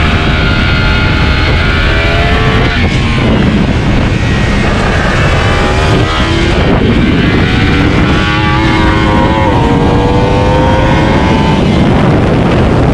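A motorcycle engine roars at high revs, rising in pitch and dropping as the rider shifts gears.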